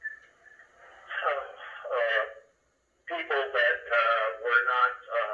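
A man speaks calmly through a small loudspeaker.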